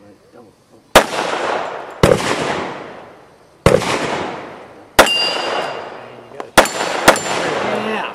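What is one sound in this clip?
Gunshots ring out sharply outdoors, echoing.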